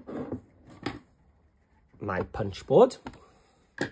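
A plastic board is set down on a table with a light knock.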